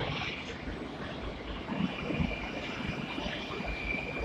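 Train brakes squeal.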